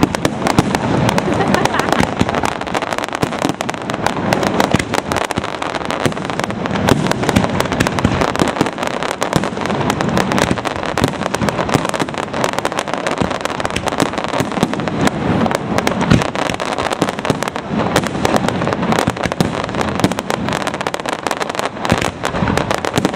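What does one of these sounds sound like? Fireworks thud and boom loudly outdoors.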